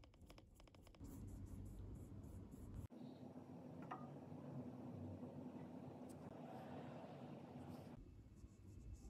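A paintbrush brushes softly across a painted surface.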